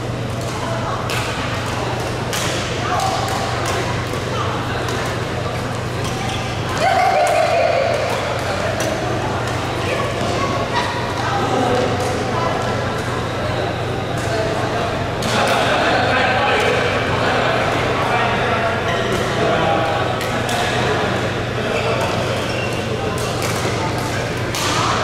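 Players' voices chatter and call out across the hall.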